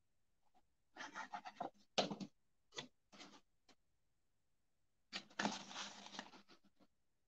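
A paper card rustles and taps softly as hands handle it.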